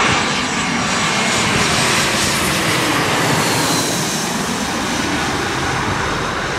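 A jet airliner's engines roar loudly close overhead.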